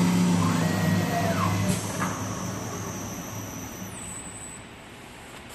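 A lathe spins a block of wood with a loud whir, then winds down.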